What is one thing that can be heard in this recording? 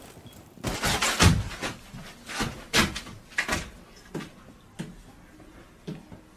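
A stick taps softly on a padded floor.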